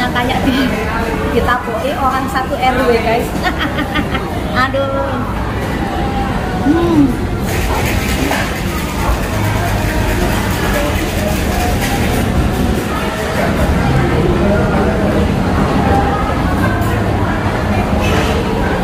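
A young woman slurps noodles.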